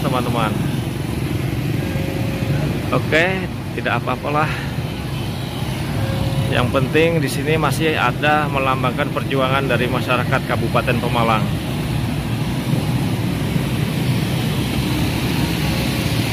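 Motorbikes drive past on a street.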